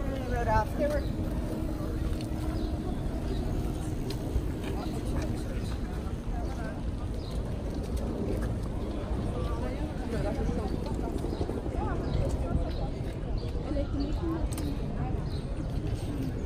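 Footsteps shuffle on a paved path.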